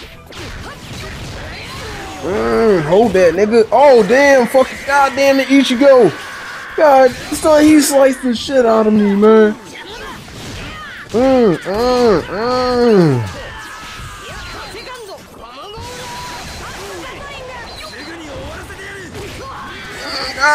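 Blows land with sharp thuds and whooshes.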